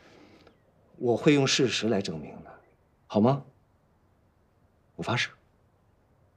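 A young man speaks earnestly and close by.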